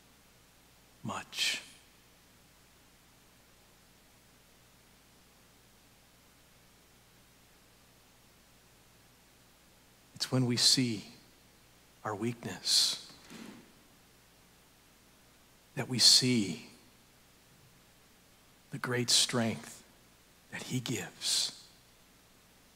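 A man speaks slowly with long pauses, heard through a microphone in a large echoing room.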